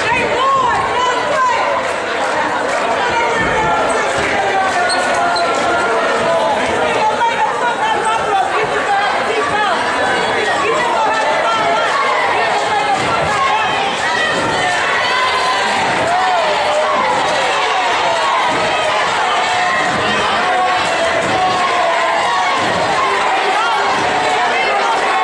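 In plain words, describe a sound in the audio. Young women cheer and chant close by.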